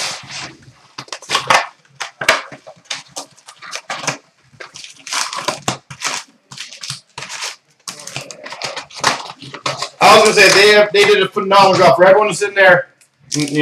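Card packs tap and slide against each other.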